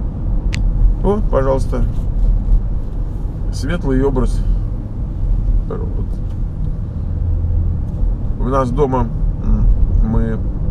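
A middle-aged man talks calmly close by inside a car.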